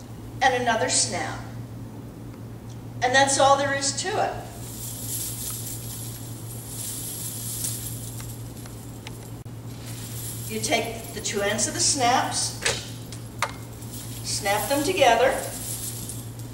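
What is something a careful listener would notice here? An elderly woman speaks nearby in short, lively phrases.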